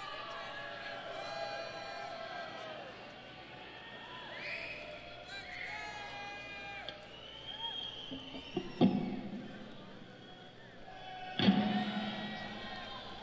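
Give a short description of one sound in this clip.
A live band plays music outdoors.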